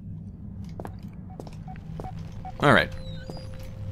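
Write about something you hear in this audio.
A heavy door creaks open.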